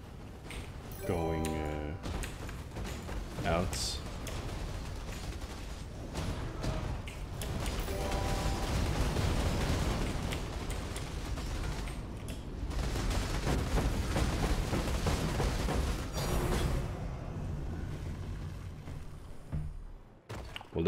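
Fiery explosions roar and rumble continuously.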